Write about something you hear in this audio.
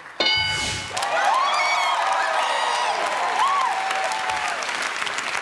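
Women scream and cheer excitedly.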